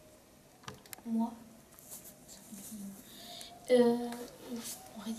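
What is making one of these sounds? A young girl speaks close by in a calm voice, with pauses.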